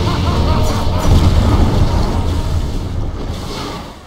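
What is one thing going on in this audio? A boulder rumbles and crashes.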